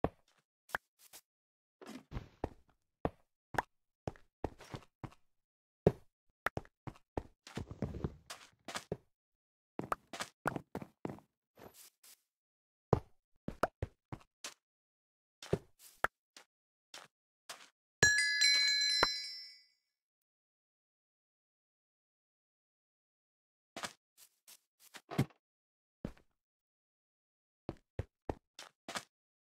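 Footsteps patter quickly on blocks in a game.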